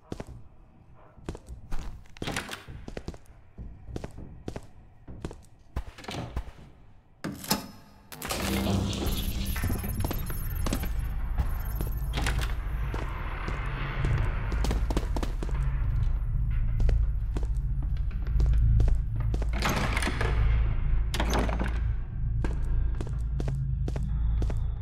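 Footsteps tread steadily across a hard floor.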